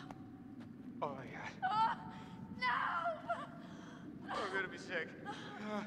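A young woman answers in a frightened voice.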